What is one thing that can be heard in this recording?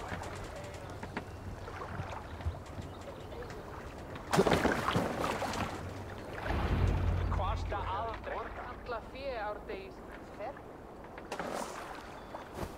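Water splashes and laps against a wooden boat's hull.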